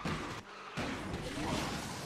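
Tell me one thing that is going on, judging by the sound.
Metal scrapes and sparks against a barrier.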